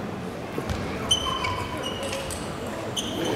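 A ping-pong ball clicks back and forth across a table in a quick rally.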